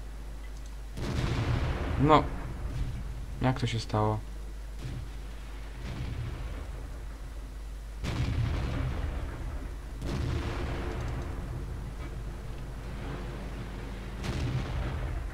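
A tank cannon fires with loud, sharp booms.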